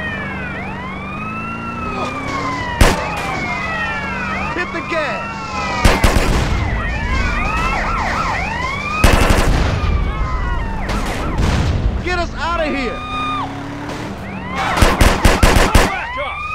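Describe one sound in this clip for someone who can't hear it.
Police sirens wail and sweep up and down.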